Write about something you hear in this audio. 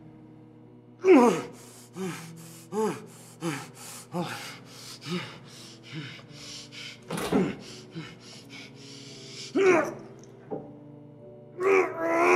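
A young man screams and groans in pain through a gag.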